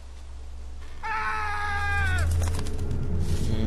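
A crow caws loudly nearby.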